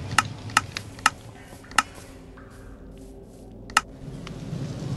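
Sharp menu clicks tap several times.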